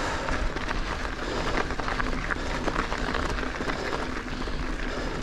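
Bicycle tyres crunch and rattle over a gravel track.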